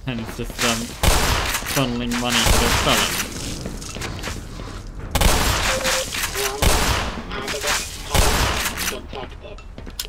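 A gun fires bursts of shots that boom and echo.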